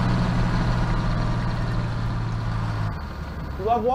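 A tank engine rumbles and clanks nearby.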